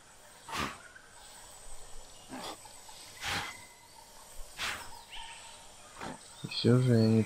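A large dinosaur's heavy footsteps thud through foliage.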